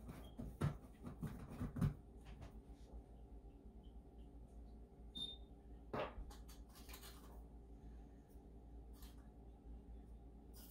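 Food sizzles in a pan.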